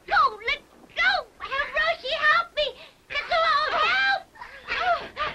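A young boy screams and cries out in distress.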